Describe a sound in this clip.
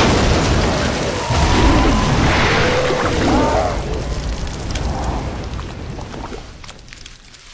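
A low roaring rush of noise fills the air and slowly dies down.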